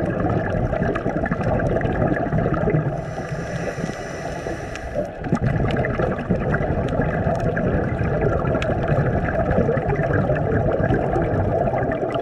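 Water rumbles and swirls, heard muffled underwater.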